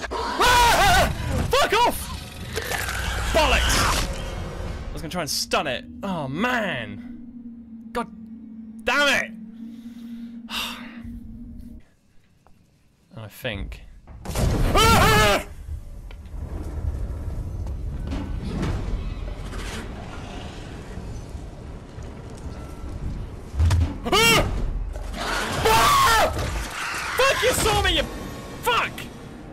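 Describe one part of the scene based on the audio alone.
A young man shouts and talks excitedly into a close microphone.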